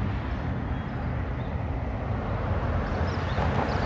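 A car drives by on a road.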